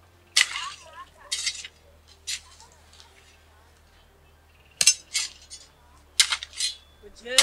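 A hoe chops into soil.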